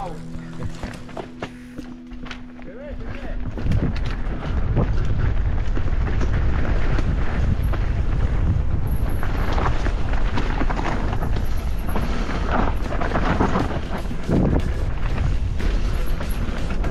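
A dirt bike engine hums and revs.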